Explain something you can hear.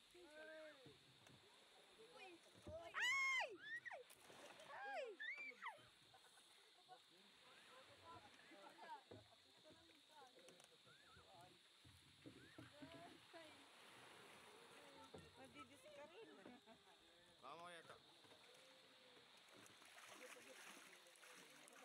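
Water splashes and laps against a small boat.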